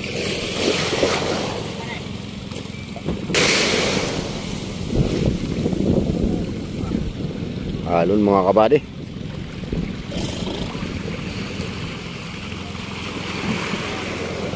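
A man splashes while wading through water.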